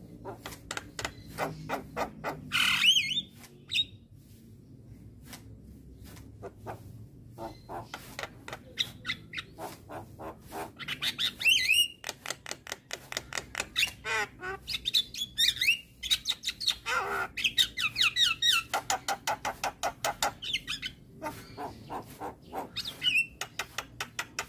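A myna bird sings loud, varied whistles and chattering calls close by.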